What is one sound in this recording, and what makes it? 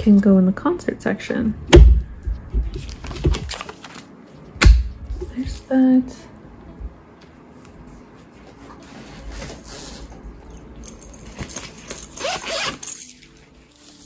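Plastic sleeves crinkle and rustle as binder pages are turned.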